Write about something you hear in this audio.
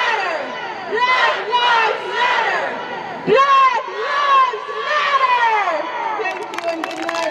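A crowd cheers and whoops loudly outdoors.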